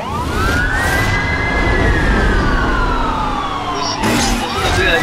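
A police siren wails.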